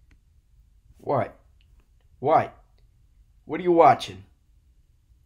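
A young man speaks a few short words close by.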